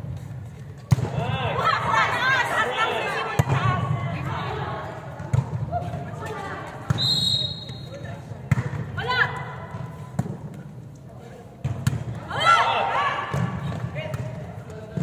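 Young women shout and call out to each other during play.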